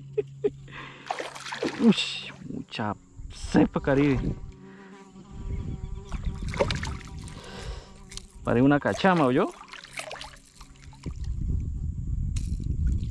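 A fish splashes and thrashes at the water's surface.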